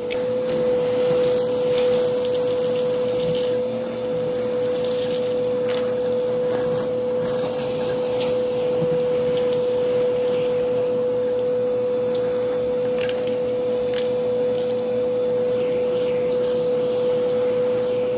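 Debris rattles up through a vacuum hose.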